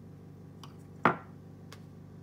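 A wooden object is set down on a hard surface with a light knock.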